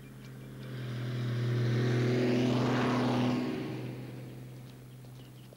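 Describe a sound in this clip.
A tractor engine rumbles loudly as it passes close by.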